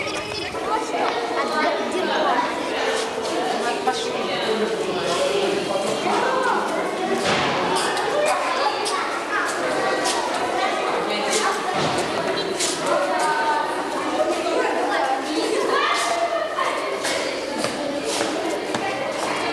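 Footsteps patter on a hard floor.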